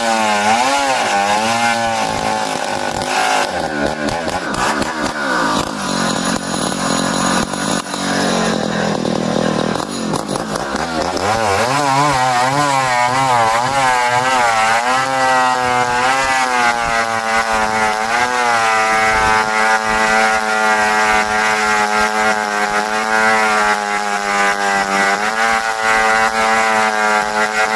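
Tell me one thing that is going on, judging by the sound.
A chainsaw roars loudly as it cuts through wood.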